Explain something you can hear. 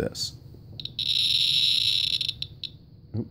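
A radiation meter gives a steady high beep.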